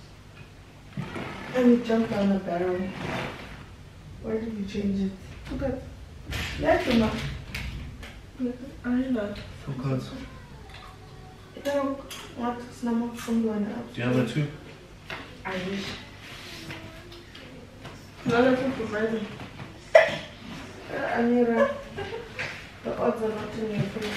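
Young women talk and laugh with animation close by.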